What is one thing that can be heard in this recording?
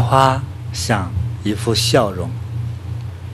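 A man speaks calmly and warmly into a microphone.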